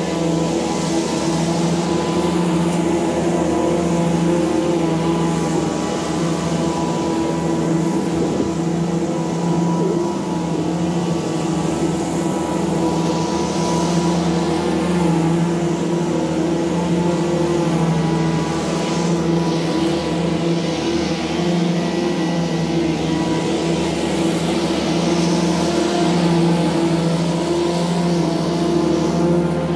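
A stand-on zero-turn mower engine drones while mowing grass.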